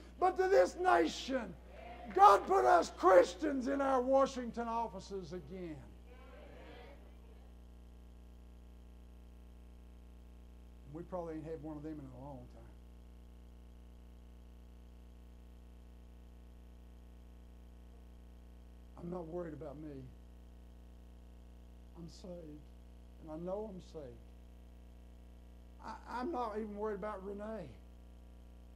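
An elderly man preaches with animation through a microphone in an echoing hall, pausing often.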